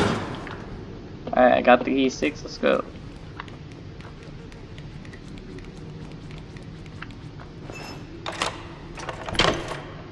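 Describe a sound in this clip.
Small footsteps patter on a hard tiled floor.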